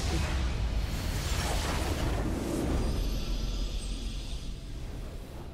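A huge explosion rumbles and crackles, then fades.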